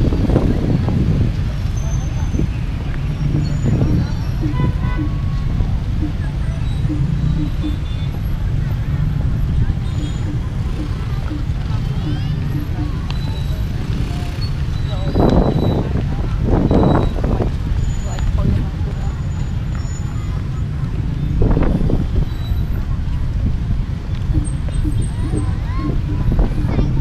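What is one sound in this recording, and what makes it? Traffic hums steadily in the distance.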